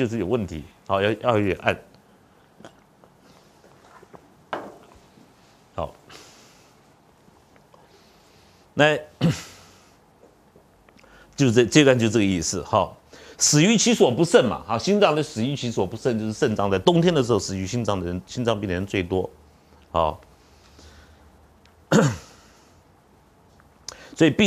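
A middle-aged man lectures calmly through a clip-on microphone, with pauses.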